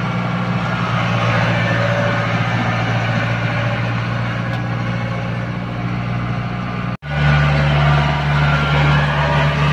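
A large diesel engine rumbles steadily close by.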